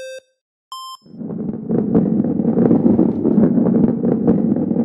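Balls roll and rumble steadily along a track.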